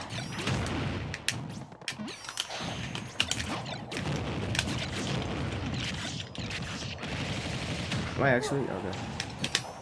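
Fighting game sound effects of sharp hits and whooshes play rapidly.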